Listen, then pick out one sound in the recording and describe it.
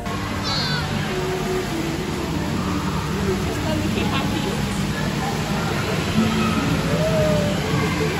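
A woman speaks softly and cheerfully to a baby in an echoing hall.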